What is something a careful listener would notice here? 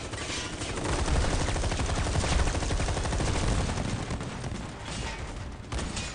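A large machine stomps heavily with deep thuds.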